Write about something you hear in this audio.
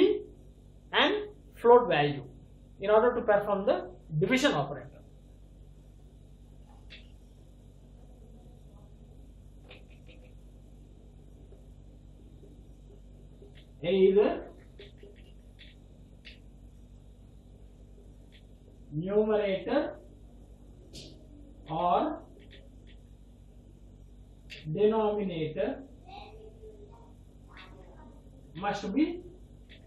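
A man speaks with animation close by, in short bursts with pauses.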